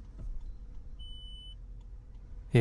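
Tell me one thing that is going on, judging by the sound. A car's touchscreen gives a short beep.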